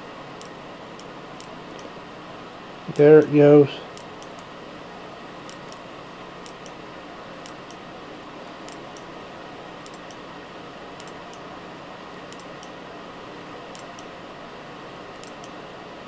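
The fan of a ceramic space heater whirs with a steady rush of air.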